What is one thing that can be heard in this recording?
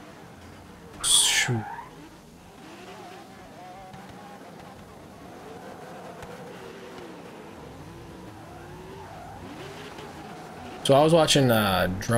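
A car engine revs loudly in short bursts.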